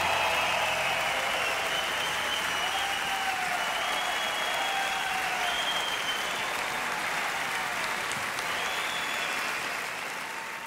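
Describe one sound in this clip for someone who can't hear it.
Members of a crowd whistle shrilly.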